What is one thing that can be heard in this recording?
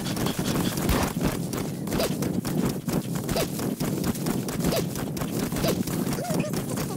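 A horse gallops, its hooves thudding rhythmically.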